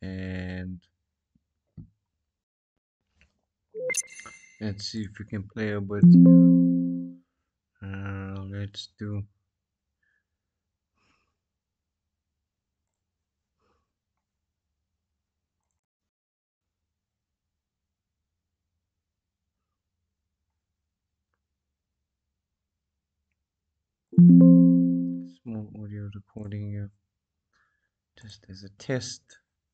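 A young man talks calmly and close to a microphone, in short bursts with long pauses.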